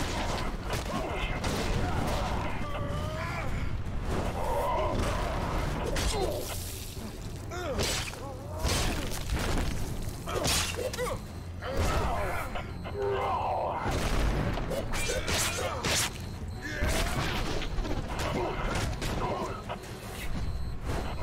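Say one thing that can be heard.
Heavy blows and slashes thud and crunch in a fight.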